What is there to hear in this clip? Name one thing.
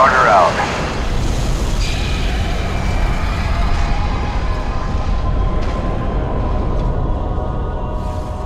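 An explosion booms and rumbles on.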